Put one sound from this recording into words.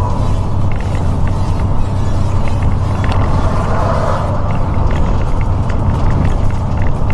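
Tyres hum on the road at speed.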